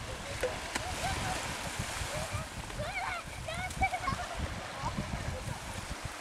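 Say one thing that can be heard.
A child splashes in shallow water.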